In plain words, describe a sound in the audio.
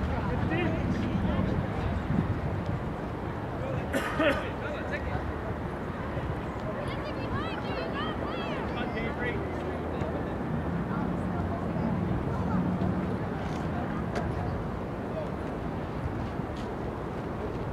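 Wind blows across an open field outdoors.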